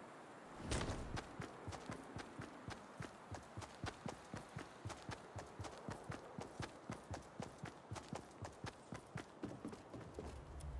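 Quick footsteps run across grass.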